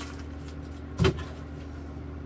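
A lid knocks as it is handled.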